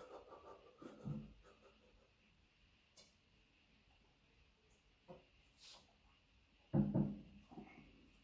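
A plastic bottle is set down on a hard counter with a thump.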